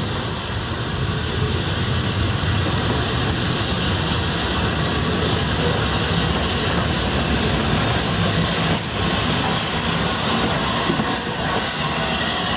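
Heavy train wheels rumble and clank on the rails as they pass close by.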